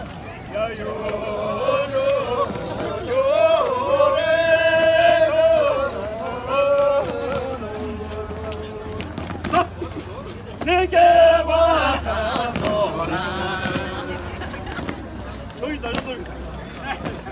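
A group of men and women sing together outdoors.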